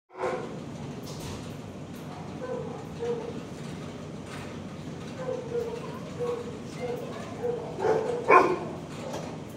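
A dog whines softly in short, high cries close by.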